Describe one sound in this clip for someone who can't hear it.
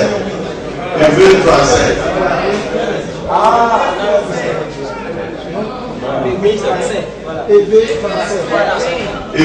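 A man speaks loudly into a microphone over a loudspeaker.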